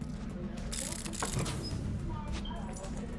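A metal chest creaks open.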